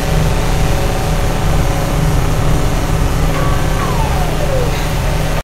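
Energy beams crackle and hum loudly from a glowing machine.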